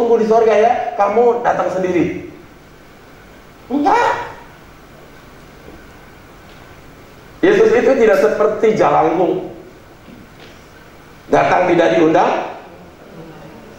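A man speaks with animation through a microphone in an echoing hall, pausing between phrases.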